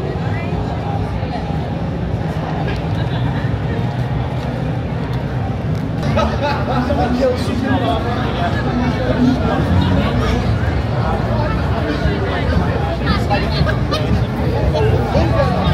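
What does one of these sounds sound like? A crowd of young people chatters and calls out nearby, outdoors in a busy street.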